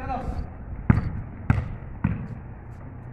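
A basketball bounces on hard ground outdoors.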